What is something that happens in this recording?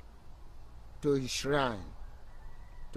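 A young man speaks in a strained voice, close by.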